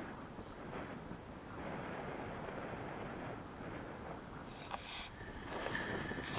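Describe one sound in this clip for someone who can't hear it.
Wind rushes steadily past a microphone outdoors.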